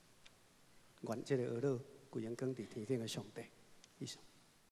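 A man speaks calmly into a microphone over loudspeakers.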